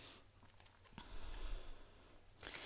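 A deck of cards is shuffled by hand with soft riffling.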